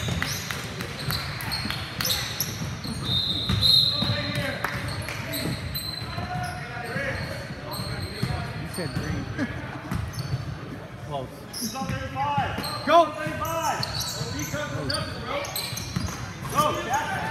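Young players call out to each other across an echoing gym.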